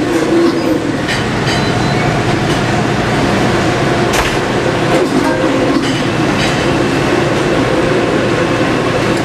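A blender whirs loudly and steadily.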